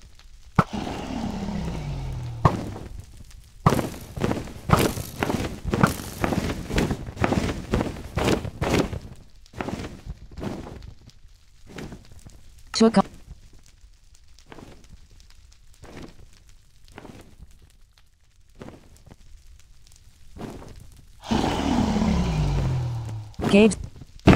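A large dragon roars with a deep, falling growl.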